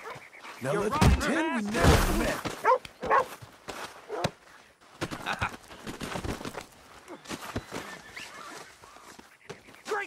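Two men scuffle.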